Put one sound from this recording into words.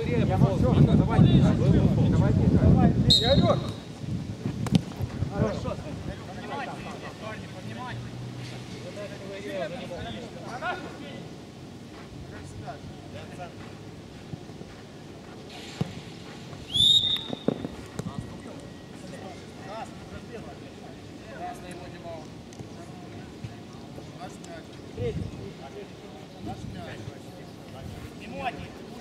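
Young men shout to one another from a distance outdoors.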